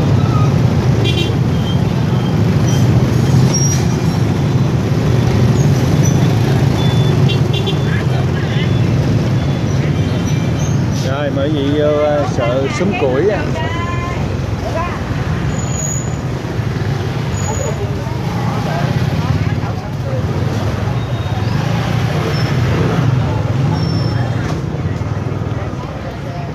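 Motorbike engines hum and rumble close by, steady throughout.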